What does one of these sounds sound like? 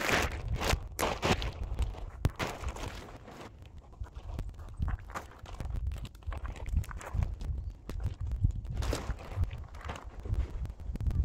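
Plastic sheeting crinkles and rustles as it is handled.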